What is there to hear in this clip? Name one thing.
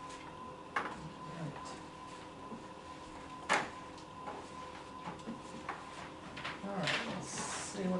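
Papers rustle and thump on a table.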